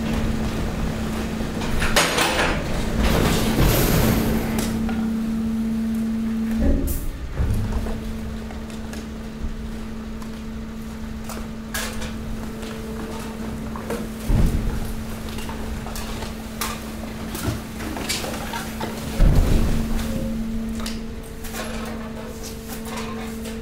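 Plastic rubbish rustles and crunches as it shifts.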